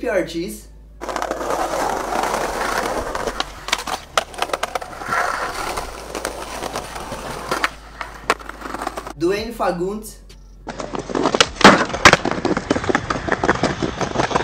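Skateboard wheels roll over concrete with a rumbling hiss.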